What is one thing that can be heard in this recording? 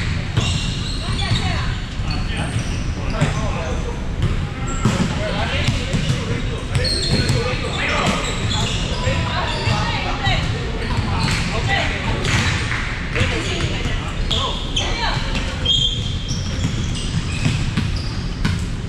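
Volleyballs thump off hands and arms in a large echoing hall.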